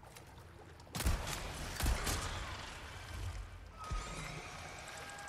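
Water splashes heavily.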